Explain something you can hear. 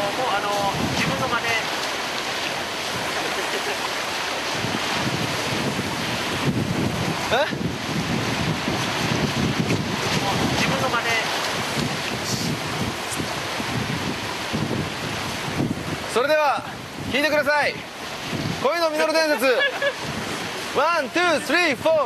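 Waves wash against rocks.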